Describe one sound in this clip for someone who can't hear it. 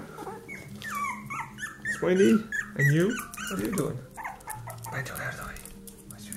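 Small paws patter and claws tap on a hard floor.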